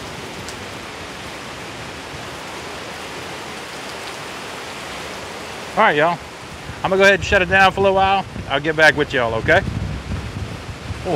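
Strong wind roars through trees.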